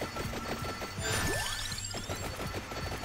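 A bright chime sweeps upward.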